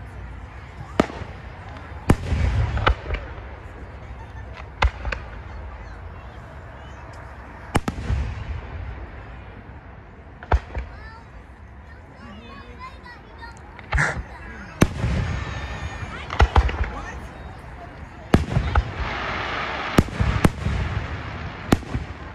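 Aerial firework shells burst overhead with sharp, echoing booms.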